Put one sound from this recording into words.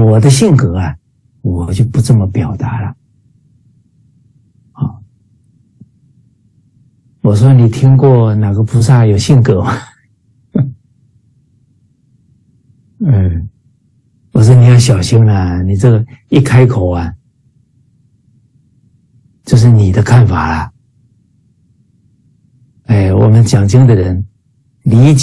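A middle-aged man speaks with animation through an online call, pausing often.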